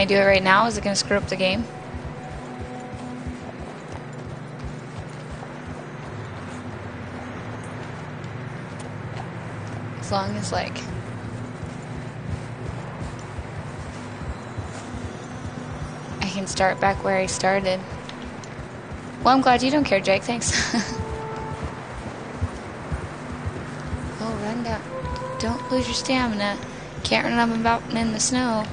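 A young woman talks with animation into a nearby microphone, in short bursts.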